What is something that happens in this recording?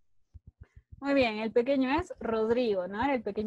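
A woman sings loudly through an online call.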